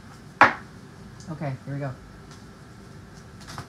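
Playing cards riffle and flick as hands shuffle a deck.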